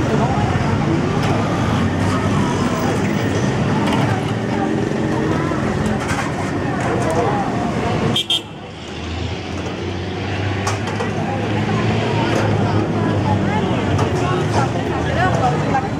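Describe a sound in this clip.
Car engines hum as traffic rolls by slowly.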